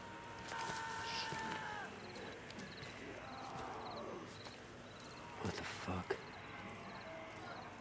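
A man swears in a startled, low voice.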